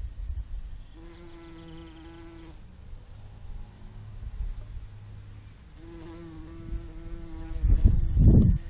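A bee buzzes close by in short steady bursts.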